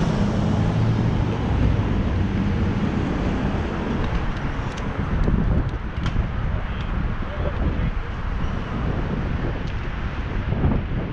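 Bicycle tyres roll over pavement.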